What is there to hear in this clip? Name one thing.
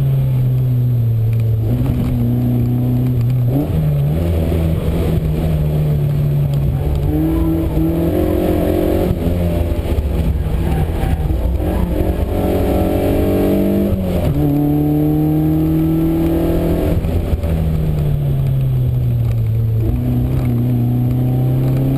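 A car engine revs hard, rising and falling with each gear change.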